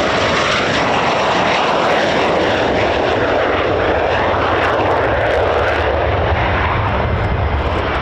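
A fighter jet roars loudly as it takes off and climbs away.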